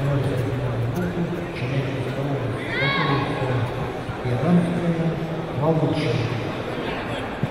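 Spectators shout out loudly.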